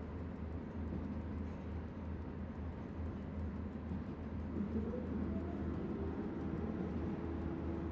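An electric locomotive hums and rumbles steadily as it runs along the track.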